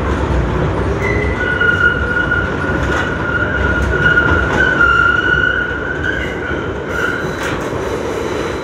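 Train wheels squeal against the rails.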